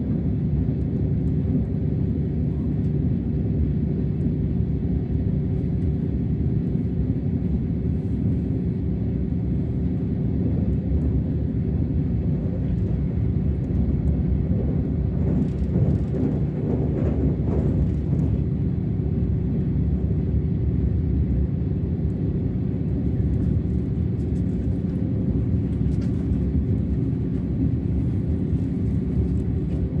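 A train rumbles steadily along the tracks, heard from inside the carriage.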